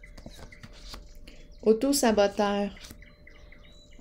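A card slides across a table.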